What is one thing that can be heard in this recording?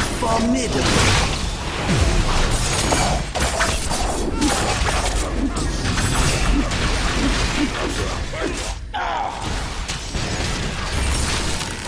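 Heavy blows and blasts thud again and again.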